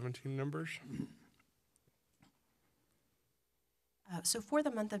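A man speaks calmly into a microphone, heard over a loudspeaker in a large room.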